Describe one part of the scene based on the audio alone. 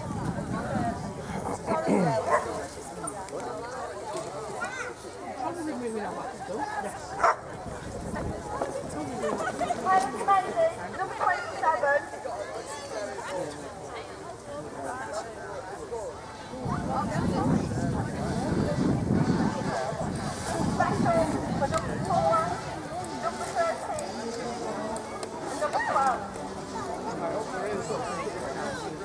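Men and women chatter at a distance outdoors.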